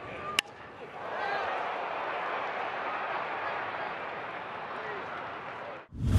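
A large crowd cheers loudly in an open stadium.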